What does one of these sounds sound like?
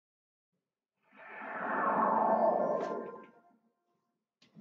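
A shimmering magical whoosh swells and fades away.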